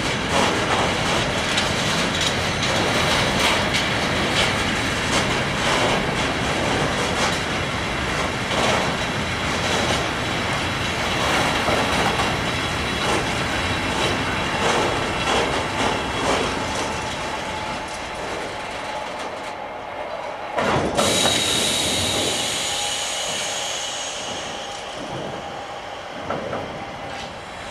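A long freight train rumbles steadily past close by.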